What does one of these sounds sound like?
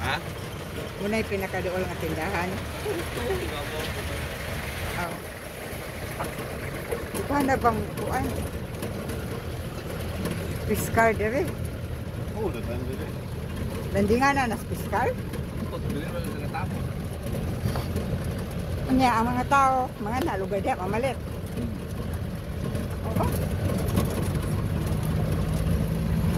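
A vehicle engine rumbles steadily from inside the cab while driving.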